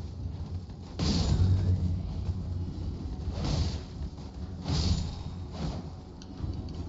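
A sword swishes and strikes in sharp bursts.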